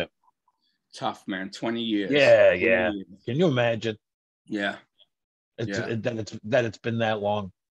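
An older man talks over an online call.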